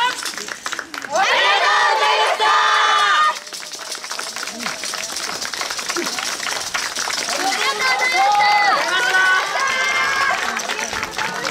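A group of women chant loudly together outdoors.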